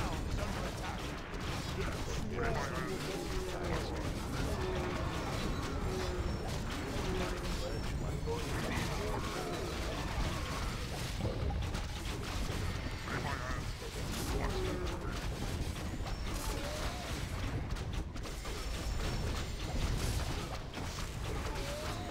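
Swords clash and strike repeatedly in a battle.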